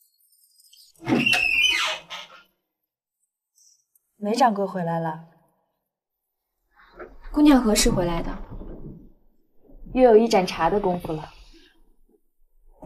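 Another young woman speaks nearby in a surprised voice.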